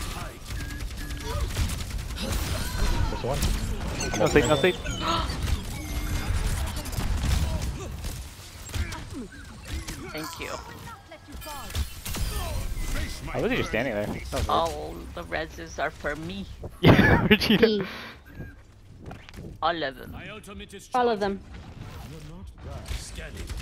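Gunfire and blasts crackle in a game's battle.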